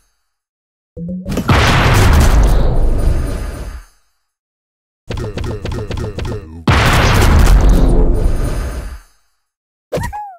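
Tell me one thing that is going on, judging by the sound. Loud crashing explosion effects burst out.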